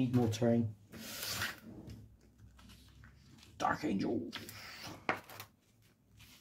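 Magazine pages rustle as they are turned.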